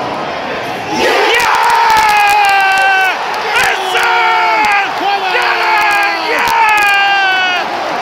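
A large stadium crowd erupts into loud cheering and singing.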